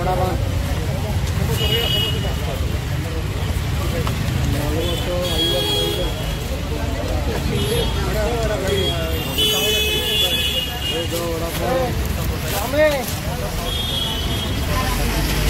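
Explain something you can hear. Traffic rumbles past outdoors.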